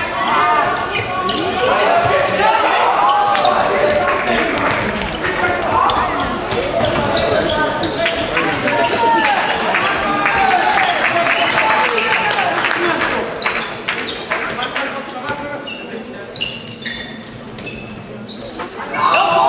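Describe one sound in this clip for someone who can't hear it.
A ball thuds as it bounces on the floor.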